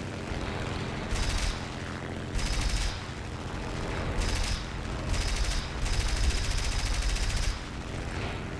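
A plane's machine guns fire in short bursts.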